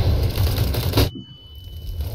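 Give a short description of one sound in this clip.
A stun grenade bursts with a sharp bang.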